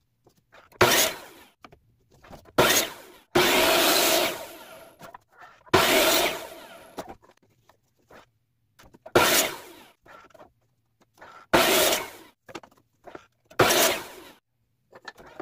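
A compound miter saw spins up and winds down again and again.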